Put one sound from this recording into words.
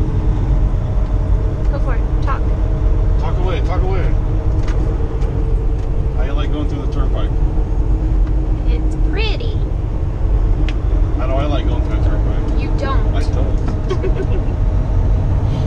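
A man talks on a phone inside the cab.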